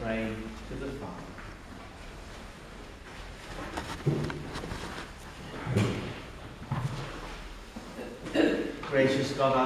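A man chants and speaks slowly in a large echoing hall.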